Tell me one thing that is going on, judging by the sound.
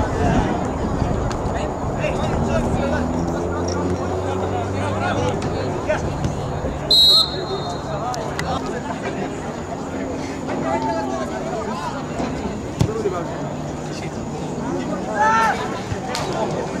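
Young men shout and call out across an open outdoor field.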